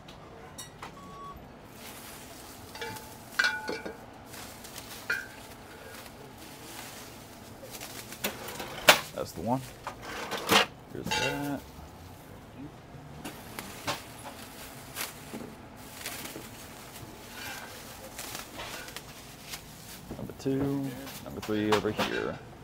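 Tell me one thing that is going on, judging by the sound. Glass bottles clink and knock together.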